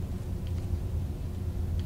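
Fire roars and crackles close by.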